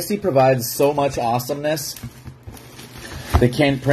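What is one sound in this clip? Plastic wrapping crinkles as hands handle a box.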